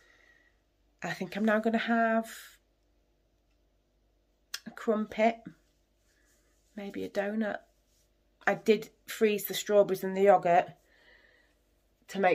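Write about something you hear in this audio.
A middle-aged woman talks calmly and close by, in short bursts with pauses.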